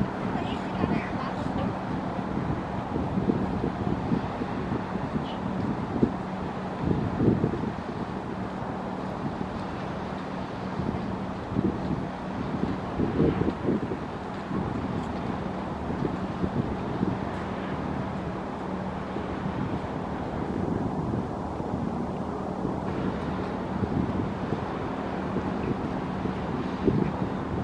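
A boat engine hums steadily across the water.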